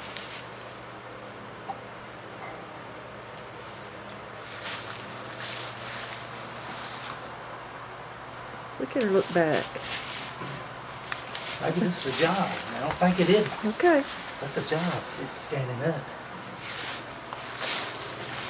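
Straw rustles and crunches underfoot.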